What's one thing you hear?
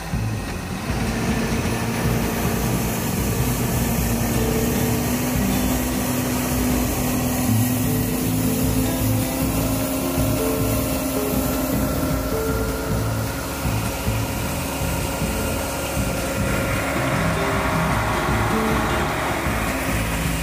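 A tractor engine hums steadily close by.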